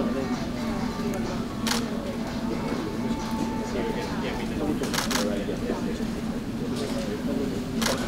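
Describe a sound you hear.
A young woman speaks calmly and explains nearby.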